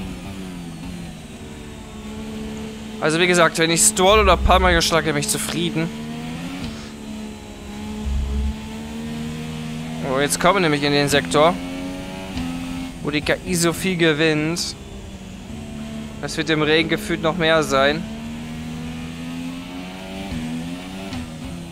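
A racing car engine hums steadily.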